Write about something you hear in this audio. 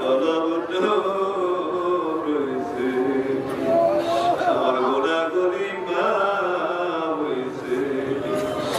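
A middle-aged man chants a sermon in a sustained, melodic voice through a loudspeaker microphone.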